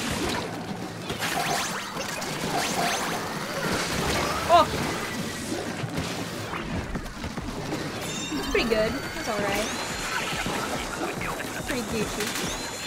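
Squelching, splattering shots of liquid pop and splash throughout.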